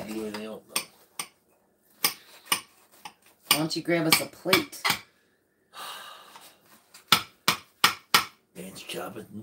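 A metal spoon scrapes and taps in a baking dish.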